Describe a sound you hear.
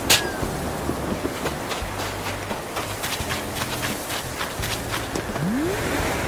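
Footsteps patter quickly over grass and sand.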